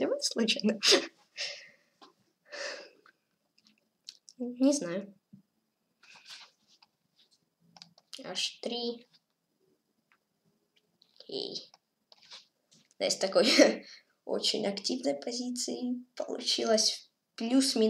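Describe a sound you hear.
A boy speaks with animation, close to a microphone, with pauses.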